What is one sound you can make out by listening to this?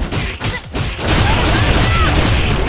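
A burst of heavy hits crashes with a loud impact.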